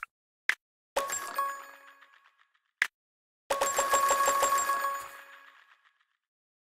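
Short bright game chimes ring out in quick bursts.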